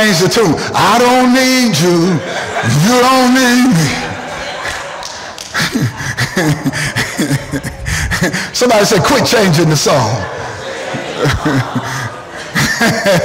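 A man preaches loudly and with animation through a microphone, in an echoing hall.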